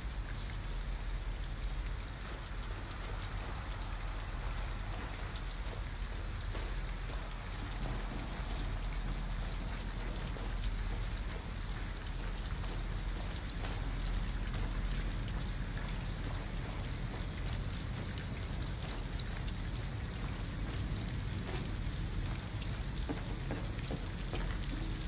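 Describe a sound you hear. Footsteps crunch softly through grass and gravel.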